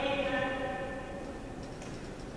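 A woman calls out a command to a dog in a large echoing hall.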